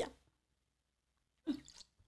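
A young woman gulps a drink from a bottle.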